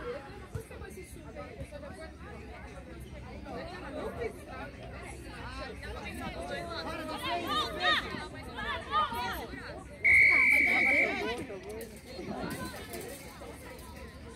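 Players shout to each other across an open field in the distance.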